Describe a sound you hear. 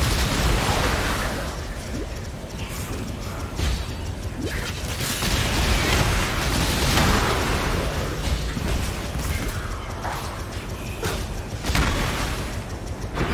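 Spell effects whoosh and crackle in rapid bursts.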